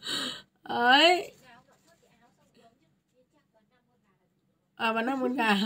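A young woman speaks brightly and with animation close to the microphone.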